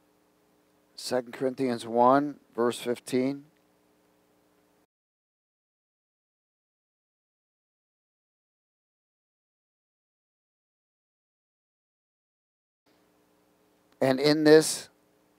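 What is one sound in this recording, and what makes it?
A man speaks into a microphone in a calm, preaching voice.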